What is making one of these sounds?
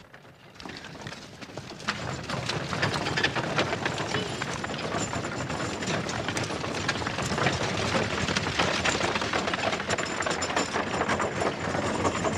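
Horses' hooves clop as a carriage rolls by.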